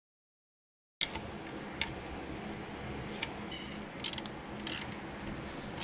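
A metal wrench clicks and scrapes against a bolt.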